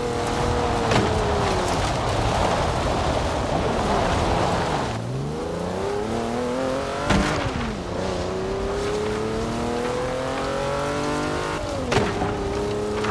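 An engine revs, its pitch rising and falling between gear shifts.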